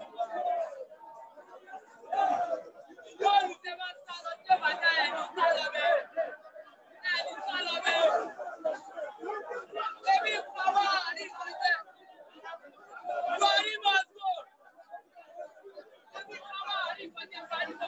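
A crowd of young men chants and shouts loudly outdoors.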